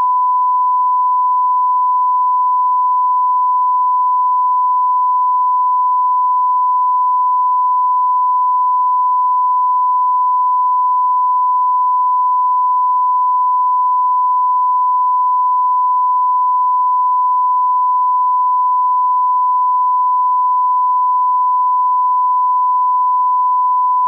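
A steady, high test tone sounds without a break.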